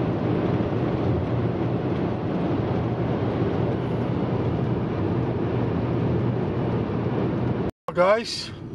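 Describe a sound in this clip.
Tyres roar steadily on a highway from inside a moving car.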